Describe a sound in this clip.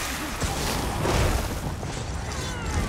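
Lightning crackles and zaps loudly.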